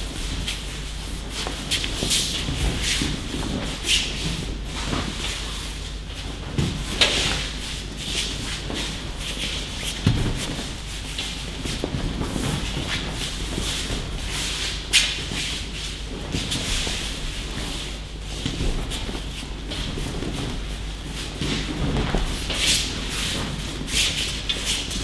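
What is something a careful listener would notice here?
Bodies thud onto mats in a large echoing hall.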